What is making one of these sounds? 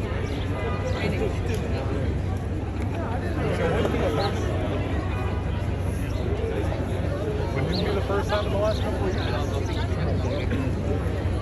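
A crowd of men and women chatters all around, close by, outdoors.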